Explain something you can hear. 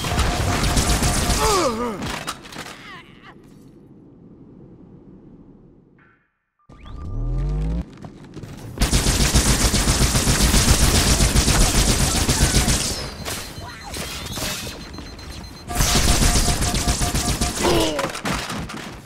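Energy guns fire in rapid, crackling bursts.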